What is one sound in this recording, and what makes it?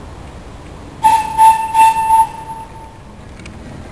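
A steam whistle on a boat toots several times.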